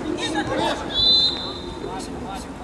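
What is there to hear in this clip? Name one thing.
A referee's whistle blows shortly.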